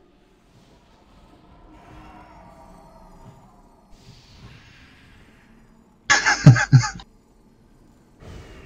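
Magical spell effects whoosh and shimmer.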